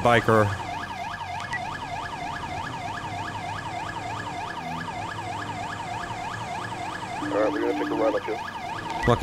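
A police siren yelps rapidly up and down close by.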